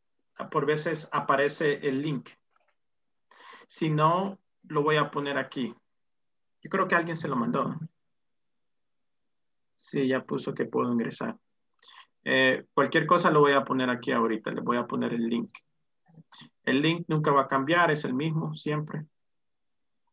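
A man speaks over an online call, in short bursts with pauses.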